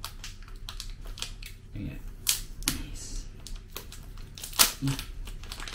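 Plastic packaging crinkles and clicks in a man's hands.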